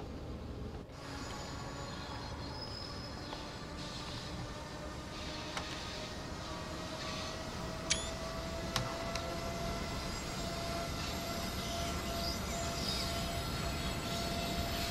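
An electric locomotive hums and whines steadily as it rolls past.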